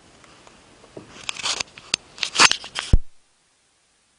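A microphone bumps and rustles as it is handled close up.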